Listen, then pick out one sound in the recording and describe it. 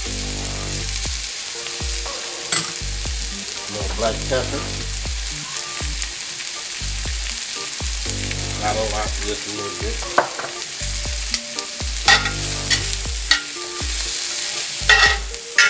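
Onions and mushrooms sizzle steadily in a hot pan.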